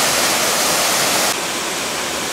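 A waterfall roars loudly.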